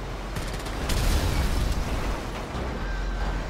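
Fire crackles and bursts with a loud roar.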